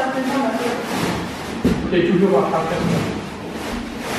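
A cardboard box scrapes and thumps on a wooden floor.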